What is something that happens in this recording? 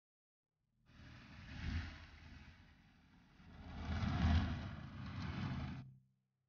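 Rain patters on a car's windows.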